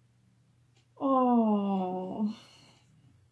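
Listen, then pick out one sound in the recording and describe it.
A young woman close by lets out a long, wavering moan of distress.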